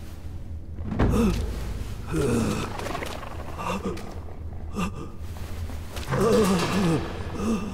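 A fox snarls and growls close by.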